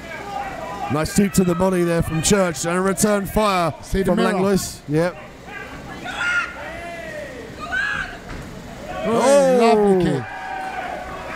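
A man in the crowd shouts loudly and repeatedly.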